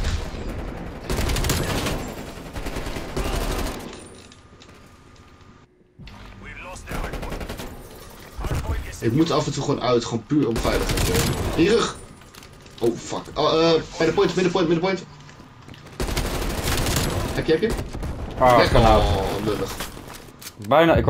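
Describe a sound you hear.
Rapid gunfire bursts loudly and close by.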